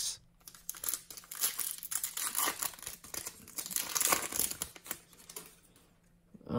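A foil card pack crinkles and tears as hands rip it open.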